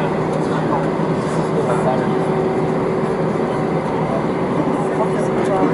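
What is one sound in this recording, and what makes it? Jet engines roar steadily inside an airliner cabin as it taxis.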